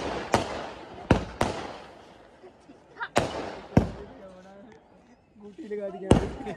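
Fireworks burst with loud, sharp bangs that echo outdoors.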